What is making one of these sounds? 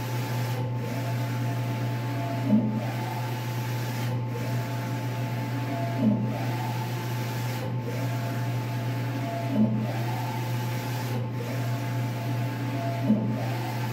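A large printer hums steadily.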